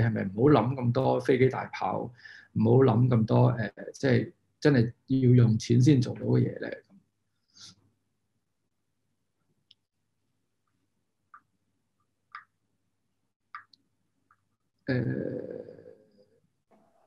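A man speaks calmly and thoughtfully, close to the microphone, as if on an online call.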